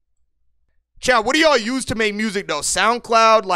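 A young man talks loudly and with animation into a close microphone.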